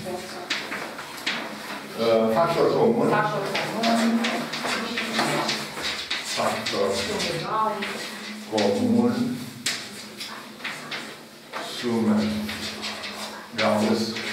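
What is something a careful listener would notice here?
A cloth wipes across a blackboard.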